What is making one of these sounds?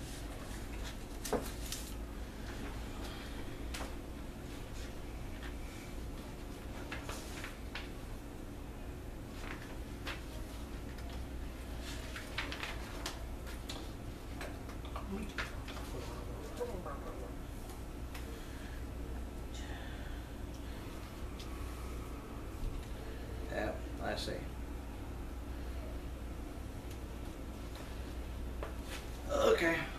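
Playing cards rustle and tap softly as they are handled.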